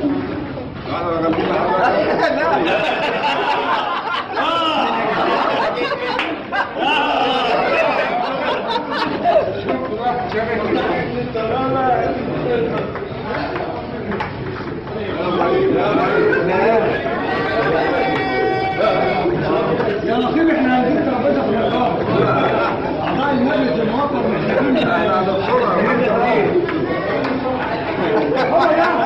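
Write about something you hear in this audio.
A crowd of men chatter and call out loudly all around.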